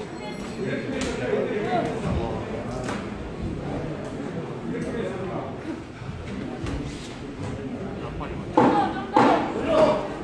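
Boxing gloves thud against a boxer's body.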